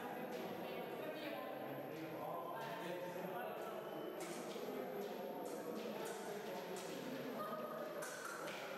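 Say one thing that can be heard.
Fencing blades clink and clash.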